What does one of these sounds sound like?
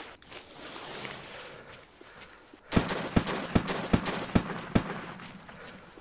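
Clothing and gear rustle as a person crawls over leaves.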